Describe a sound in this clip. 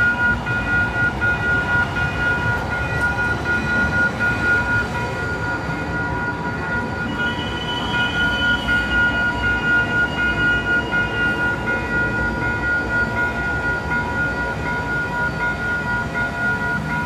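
A train rumbles and clatters past close by.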